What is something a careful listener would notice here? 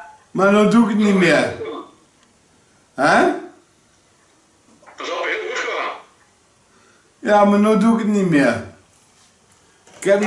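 A middle-aged man speaks close by in loud, drawn-out bursts with pauses between them.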